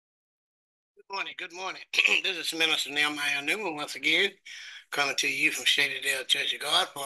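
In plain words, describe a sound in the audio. An elderly man speaks calmly and close, heard through an online call.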